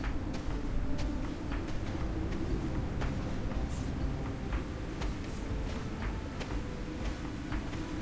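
A low electric hum drones steadily from a beam tool.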